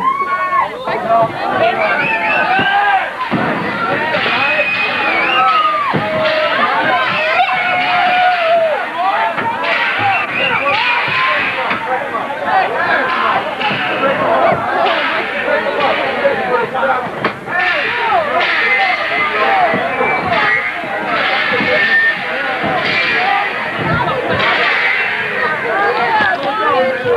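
A dense crowd shouts and cheers loudly close by.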